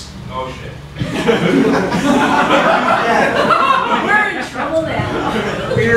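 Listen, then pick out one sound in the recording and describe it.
An audience laughs loudly.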